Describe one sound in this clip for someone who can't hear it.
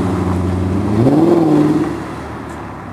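A sports car engine revs up sharply as the car pulls away.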